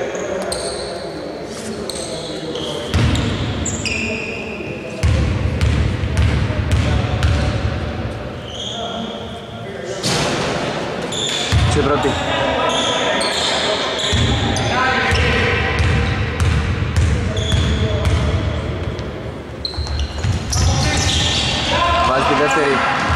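Players' footsteps thud across the court.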